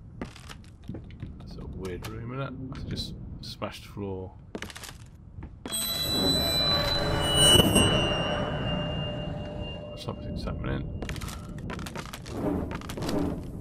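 Footsteps crunch over broken debris.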